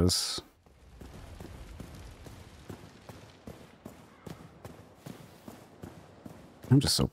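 Footsteps tap on stone at a steady walking pace.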